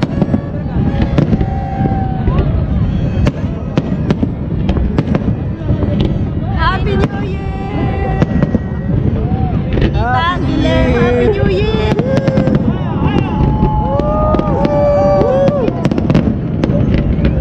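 Fireworks whistle as they shoot upward.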